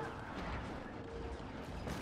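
A blaster fires a laser shot.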